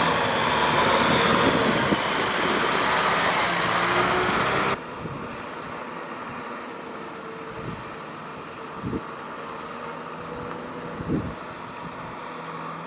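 A tractor engine runs close by.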